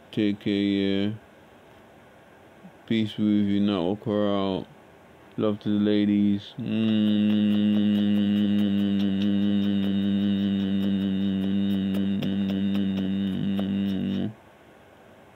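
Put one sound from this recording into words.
A man sings in short phrases close to a phone microphone, then hums one long, steady note.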